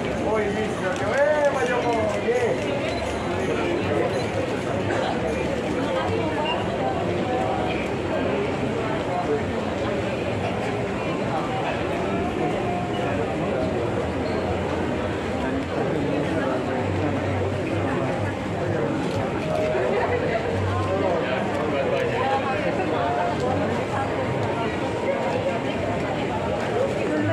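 A crowd of men and women talks and calls out all around, close by.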